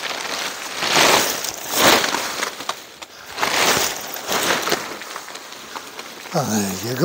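Tent fabric rustles and flaps loudly as it is shaken out.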